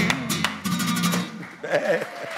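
A guitar is plucked in short bright notes.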